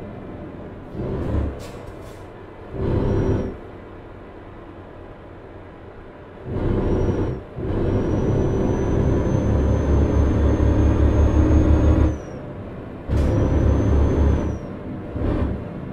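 A truck engine revs up and down as it changes gear.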